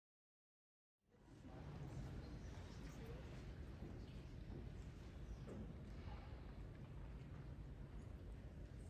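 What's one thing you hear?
An audience murmurs quietly in a large echoing hall.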